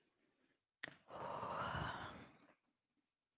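A young woman breathes out audibly near a microphone.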